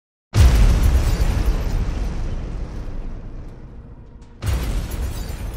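A deep explosion booms and rumbles away.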